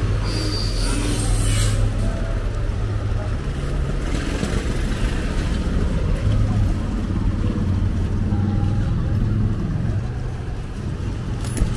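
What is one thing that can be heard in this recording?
Diesel engines idle and rumble close by on a busy street.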